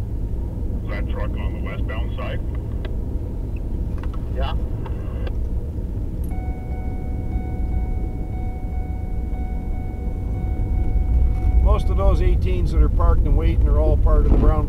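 Tyres roll over a snowy road.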